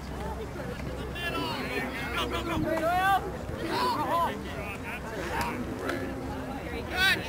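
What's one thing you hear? Boys shout to each other across an open field outdoors.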